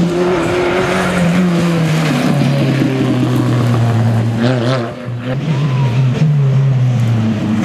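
A rally car engine roars loudly, revving up and down through the gears.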